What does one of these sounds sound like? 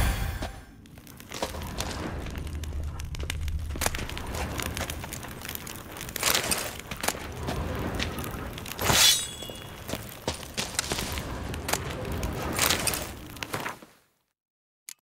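Footsteps scuff on a stone floor in an echoing room.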